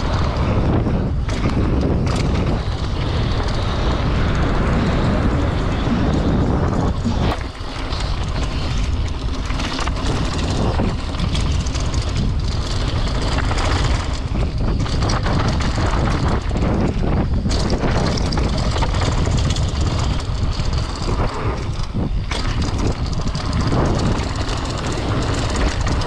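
Bicycle tyres roll and crunch over gravel and dirt up close.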